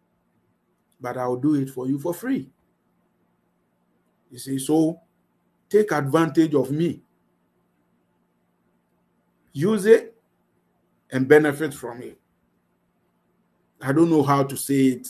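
A man speaks calmly in bursts through an online call microphone.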